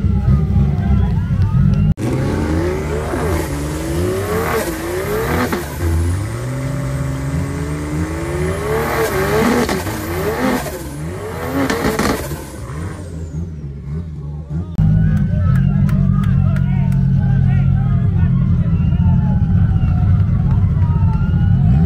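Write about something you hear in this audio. Car tyres squeal as they spin on the road.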